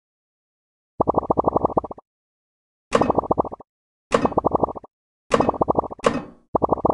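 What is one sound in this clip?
Quick bursts of rapid plinking chimes sound.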